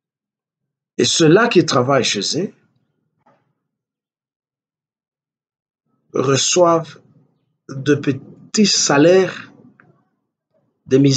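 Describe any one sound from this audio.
An elderly man speaks calmly and with emphasis into a close microphone, with pauses between phrases.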